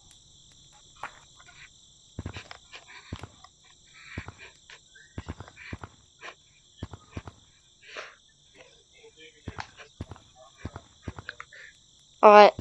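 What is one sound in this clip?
Quick soft thumps tap out as hands slap against rock while climbing.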